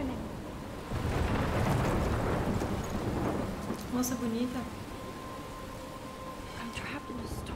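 Wind roars in a storm.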